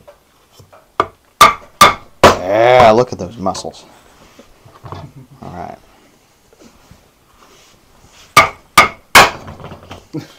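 A knife chops sharply on a wooden board.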